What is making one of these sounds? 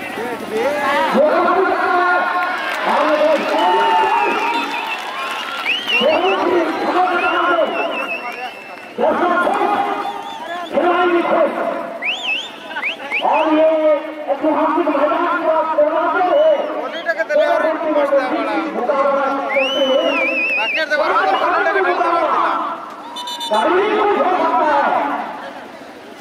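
A crowd of spectators shouts and chatters outdoors.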